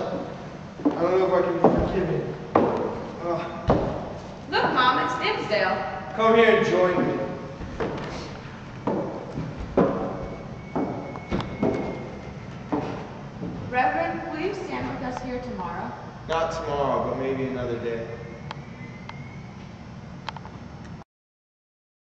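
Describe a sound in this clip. A young woman speaks loudly in an echoing hall.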